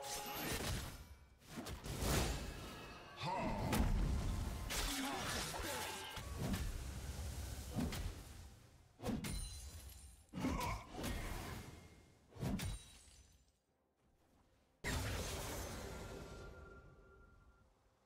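Game spell effects whoosh and crash in quick bursts.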